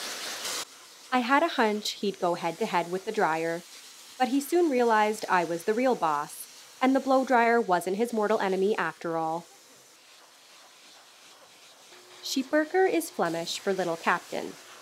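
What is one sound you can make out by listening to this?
A young woman talks calmly and cheerfully, close by.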